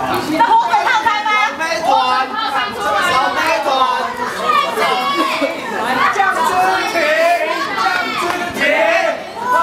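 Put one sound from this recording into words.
Young women and men chatter nearby outdoors.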